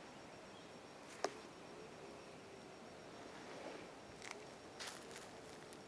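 Small flames crackle faintly on dry brush.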